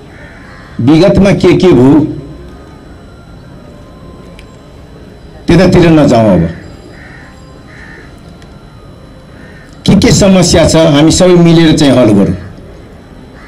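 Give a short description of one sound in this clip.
A middle-aged man speaks loudly through a microphone and loudspeakers, in short bursts with pauses.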